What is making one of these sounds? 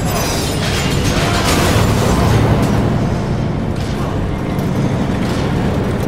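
Metal blades clash in a fight.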